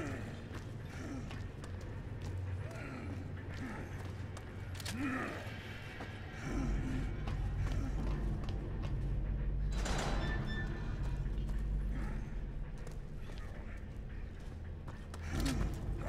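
Footsteps crunch on a gritty floor.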